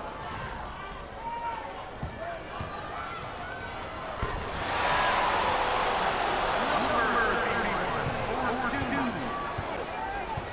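A crowd cheers loudly in a large echoing arena, swelling midway.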